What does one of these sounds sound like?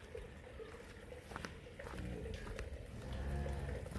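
Cow hooves shuffle and clop on wet concrete.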